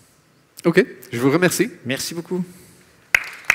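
A man speaks briefly into a microphone in a large hall.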